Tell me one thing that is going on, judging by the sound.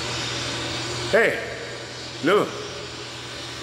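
A man calls out loudly in an echoing space.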